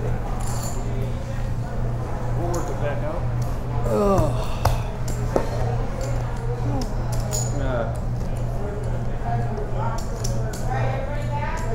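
Middle-aged men talk casually nearby.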